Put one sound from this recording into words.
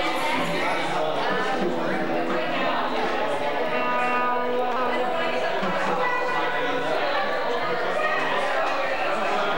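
A woman sings into a microphone over a live band.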